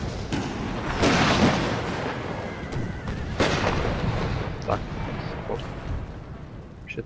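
Cannons boom in a battle.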